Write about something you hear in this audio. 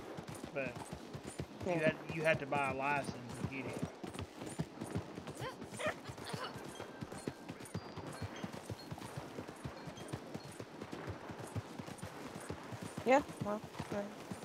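Horse hooves pound quickly on gravel.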